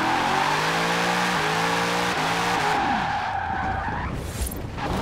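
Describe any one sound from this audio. Tyres screech as a car drifts on tarmac.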